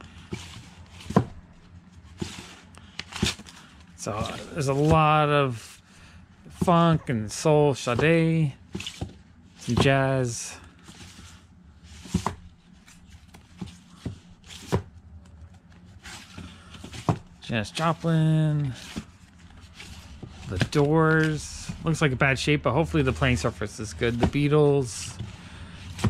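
Cardboard record sleeves knock and clatter as they are flipped through by hand.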